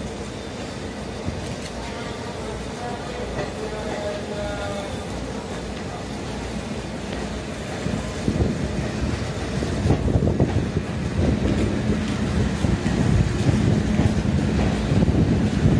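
A train rolls slowly into the station with a low rumble and clatter of wheels on rails.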